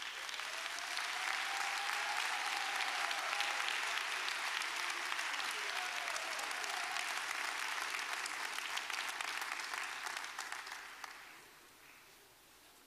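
A crowd applauds in a large echoing hall and the applause fades.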